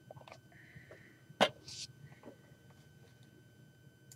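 Small plastic toy figures click as they are set down on a hard surface.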